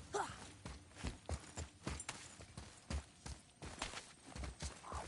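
Heavy footsteps thud quickly on stone.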